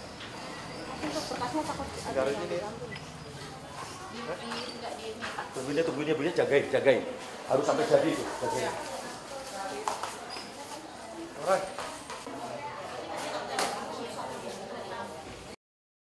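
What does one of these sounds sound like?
Several women and men chatter nearby.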